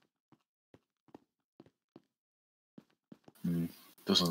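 Footsteps tap lightly on stone.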